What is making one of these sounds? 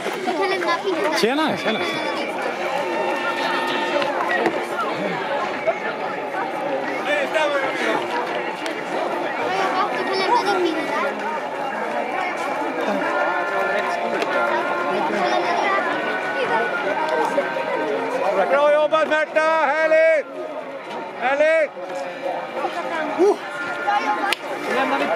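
Spectators chatter and cheer outdoors.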